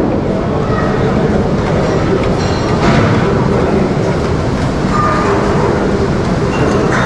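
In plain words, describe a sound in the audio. Hands scrape food off a metal plate.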